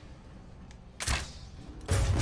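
A crossbow fires with a sharp snap.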